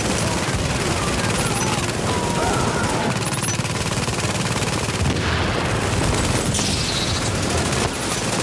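Rapid gunfire rattles continuously.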